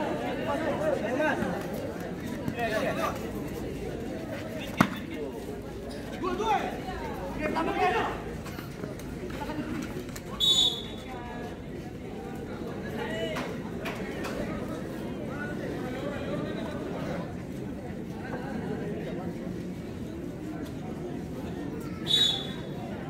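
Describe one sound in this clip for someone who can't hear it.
A large crowd chatters and shouts throughout.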